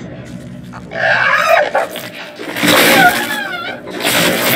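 A creature shrieks harshly up close.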